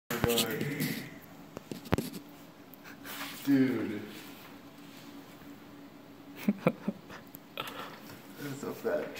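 A young man laughs and exclaims close by.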